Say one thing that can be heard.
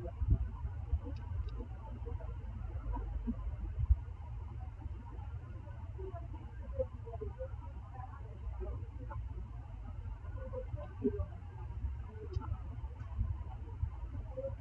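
Soft blips sound as menu options are selected.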